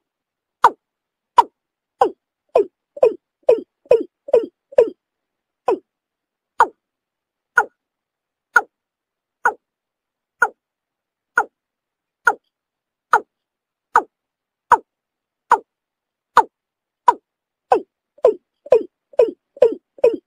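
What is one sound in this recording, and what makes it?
A bird calls over and over with short, sharp, croaking notes.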